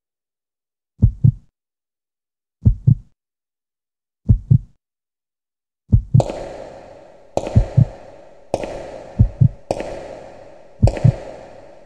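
Heavy footsteps thud slowly up stone stairs, growing louder and more echoing.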